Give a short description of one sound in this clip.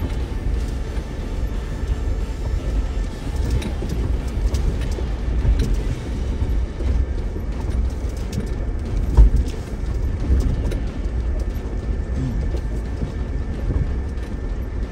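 A vehicle engine rumbles low as it crawls over rocks.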